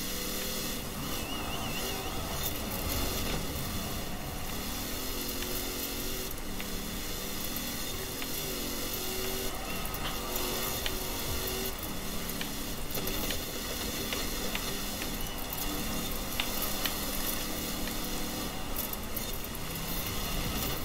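A pickup truck's engine revs hard and shifts gears.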